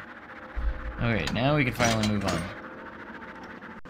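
A bright magical chime sparkles as a door unlocks.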